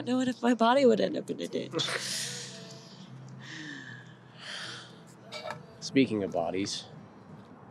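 A woman speaks emotionally nearby.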